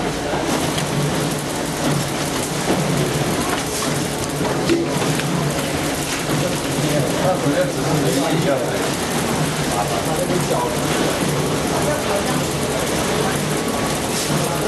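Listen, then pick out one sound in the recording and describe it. A packaging machine hums and clatters steadily.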